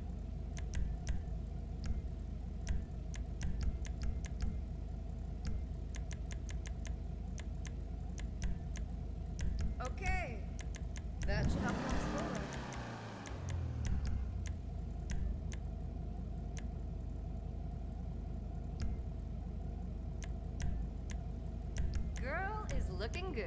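Short menu clicks tick again and again.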